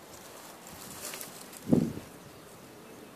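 Dry grass rustles and crackles under a hand.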